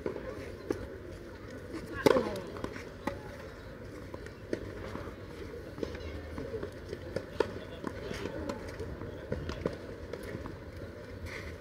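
Tennis balls are struck with rackets in a rally, with sharp pops.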